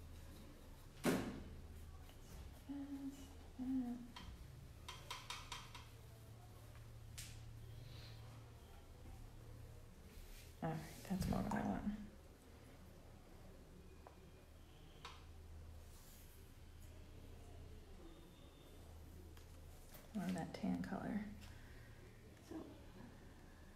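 A paintbrush clinks and taps against a paint palette.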